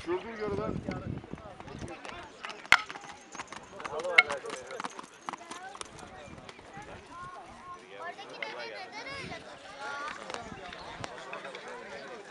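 A horse trots with hooves thudding on dry dirt.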